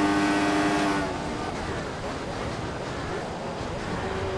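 A Formula One car's engine drops in pitch as it brakes and downshifts.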